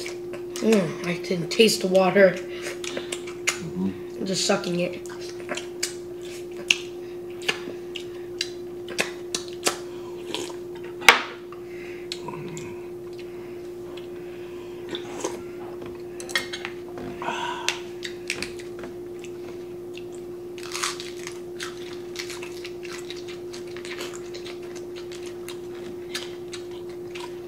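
A boy crunches crisp lettuce close up.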